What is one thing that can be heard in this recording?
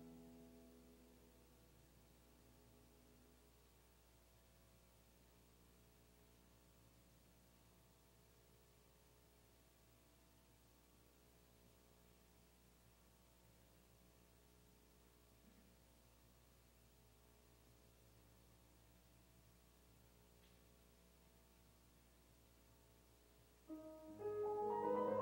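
A piano plays softly and slowly in a large reverberant hall, then swells into loud chords.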